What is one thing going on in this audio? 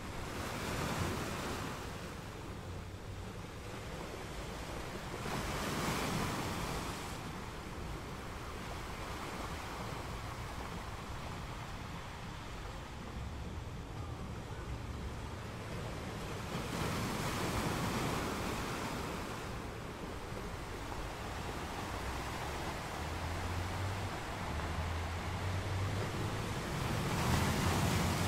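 Water rushes and hisses over rocks as waves wash in.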